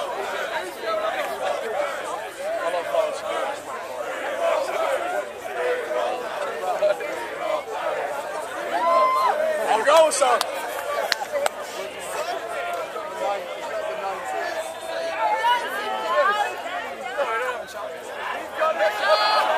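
A crowd of people chatters loudly all around outdoors.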